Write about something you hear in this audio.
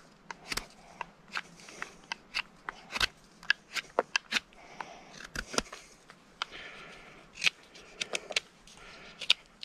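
A knife shaves and scrapes wood in short, sharp strokes close by.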